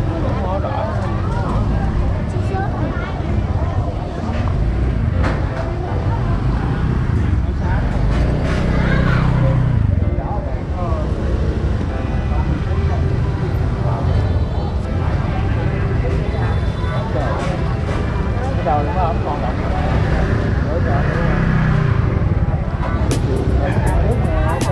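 A crowd of people talk all around in a busy, noisy market.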